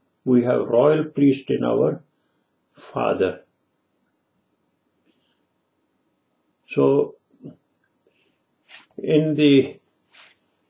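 An elderly man speaks calmly and close up, with pauses.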